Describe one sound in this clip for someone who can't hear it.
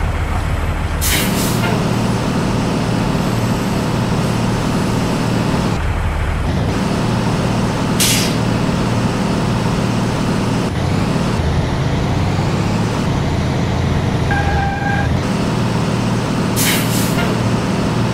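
A truck's air brakes release with a sharp hiss.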